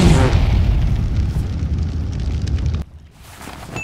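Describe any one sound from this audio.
Flames roar and crackle on a grill.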